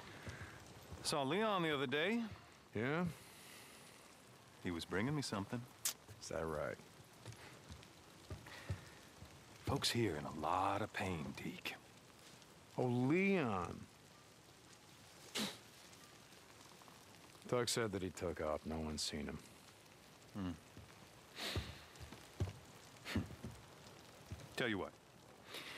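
A man speaks calmly in a low voice, close by.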